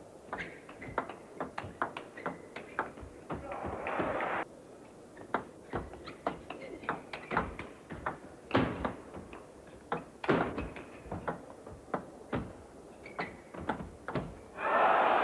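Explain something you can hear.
A table tennis ball clicks back and forth between paddles and the table in a large hall.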